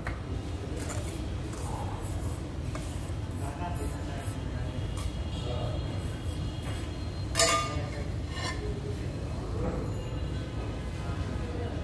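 A trowel scrapes across wet mortar.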